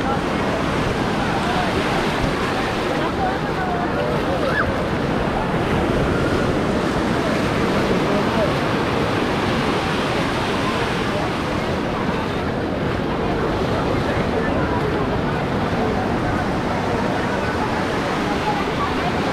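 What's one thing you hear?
Small waves wash and splash onto the shore.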